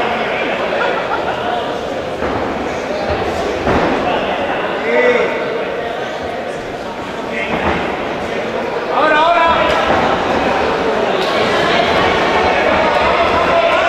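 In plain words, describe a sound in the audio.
Kickboxers' punches and kicks thud against gloves and bodies.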